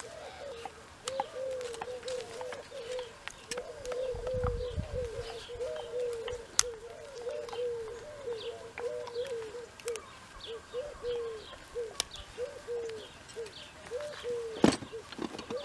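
A hoof knife scrapes and clicks against a horse's hoof.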